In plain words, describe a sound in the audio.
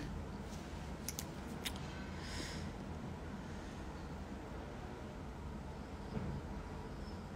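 A young woman speaks calmly and quietly, close to a phone microphone.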